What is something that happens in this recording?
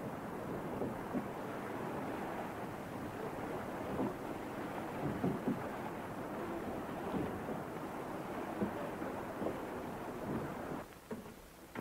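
Waves wash against a boat's hull in a steady rush.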